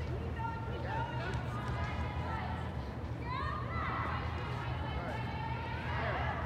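Young women shout to each other in a large echoing hall.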